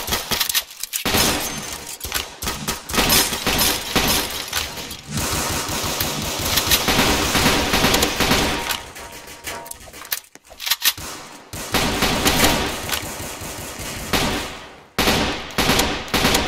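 An assault rifle fires rapid bursts of shots.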